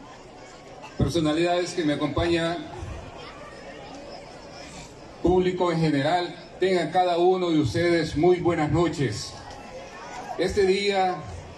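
A man speaks with animation into a microphone, heard through loudspeakers outdoors.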